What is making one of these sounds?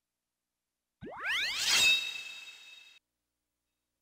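A game sound effect sweeps upward in a bright whoosh and rings out.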